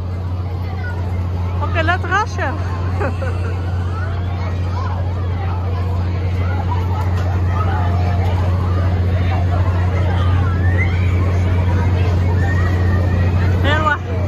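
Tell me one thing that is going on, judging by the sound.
A fairground ride's motor hums loudly and steadily.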